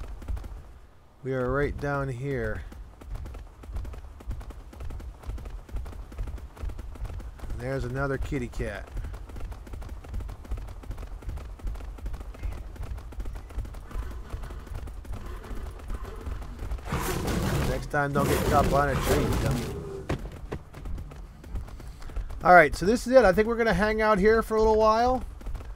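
Heavy footsteps of a large animal thud on the ground.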